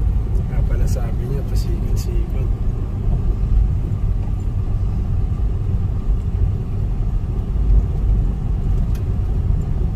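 Tyres rumble and bump over a rough dirt road.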